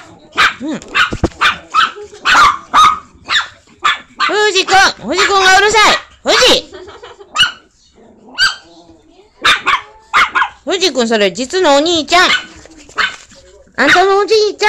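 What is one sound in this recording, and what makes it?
Small dogs bark and yelp sharply, close by.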